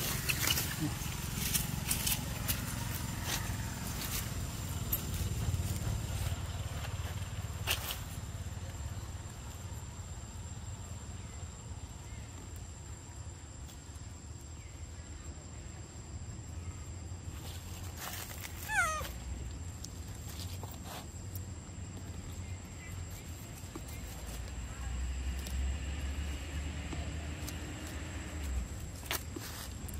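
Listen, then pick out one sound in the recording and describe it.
A monkey scurries over dry leaves.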